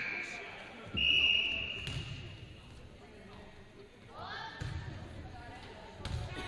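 Athletic shoes squeak on a hardwood court in an echoing gym.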